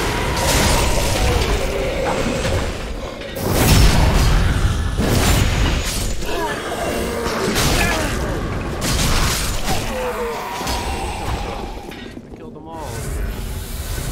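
Swords clash and strike armour in a fight.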